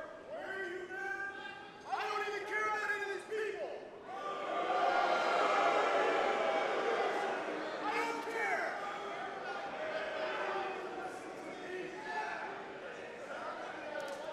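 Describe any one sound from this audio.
A large crowd chants and cheers loudly in an echoing hall.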